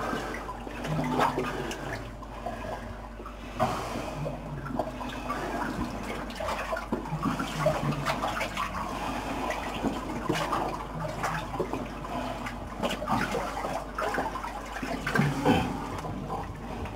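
Thick mud squelches and sloshes as a man crawls through it.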